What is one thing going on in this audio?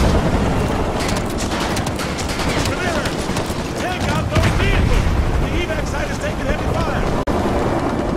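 Gunfire crackles in rapid bursts nearby.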